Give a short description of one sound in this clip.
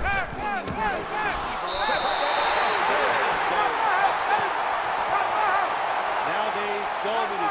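A large stadium crowd cheers and roars.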